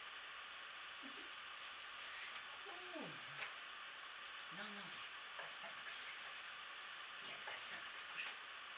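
A dog whines and grumbles softly while wrestling.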